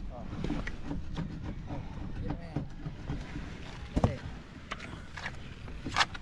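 A hand taps and rubs on a boat's hull.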